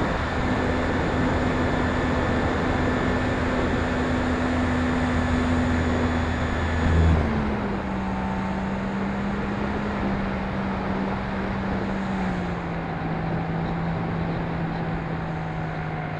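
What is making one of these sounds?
Wind rushes past the plane.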